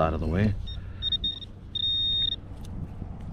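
A metal detector beeps in short high tones.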